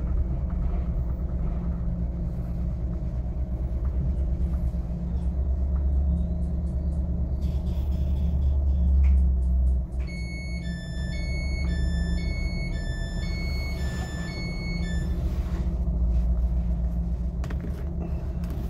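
A train rumbles steadily and slows to a stop.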